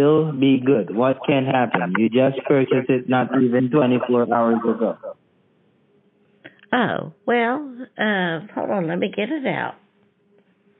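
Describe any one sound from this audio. An elderly woman talks with animation over a phone line.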